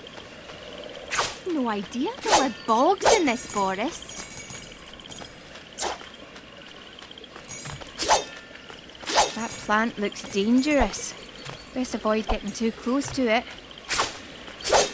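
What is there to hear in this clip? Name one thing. Coins jingle as they are picked up in quick chimes.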